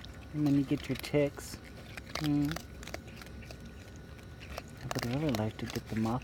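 A raccoon crunches dry pet food.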